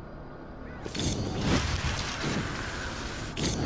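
Sparks burst and crackle with a whooshing rush.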